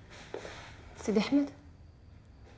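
A woman speaks briefly and tensely, close by.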